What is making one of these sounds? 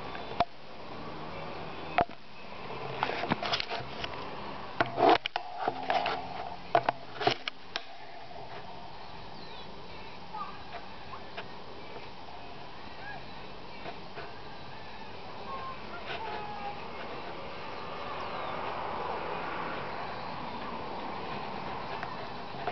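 Cows tear and munch grass nearby.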